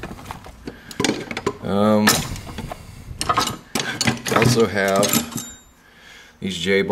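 Metal tools clink and rattle as a hand rummages through them.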